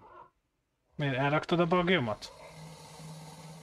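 A large dinosaur roars loudly.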